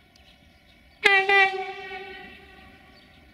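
A locomotive horn blares once and rings out.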